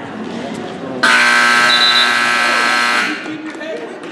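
A loud scoreboard buzzer sounds for about two seconds.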